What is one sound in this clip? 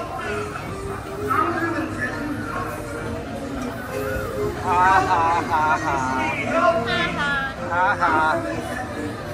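Recorded men's voices sing and call out loudly through loudspeakers.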